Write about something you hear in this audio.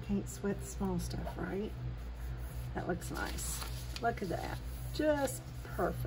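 Paper rustles as a sheet is shifted.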